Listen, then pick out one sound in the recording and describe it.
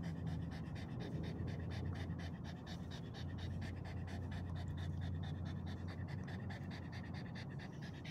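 A dog pants quickly and heavily close by.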